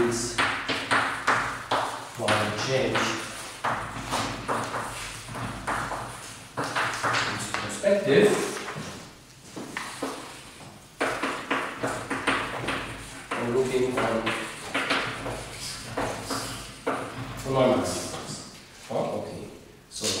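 An elderly man lectures calmly in an echoing room.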